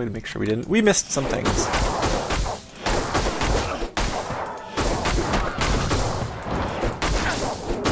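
Weapons strike and clash in a fierce fight.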